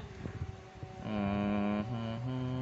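A phone plays a short startup chime.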